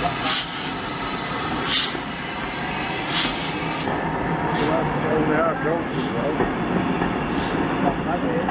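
A steam locomotive chuffs in loud, regular puffs.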